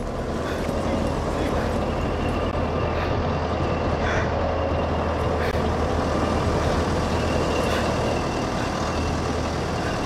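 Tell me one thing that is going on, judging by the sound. Footsteps tread on cobblestones.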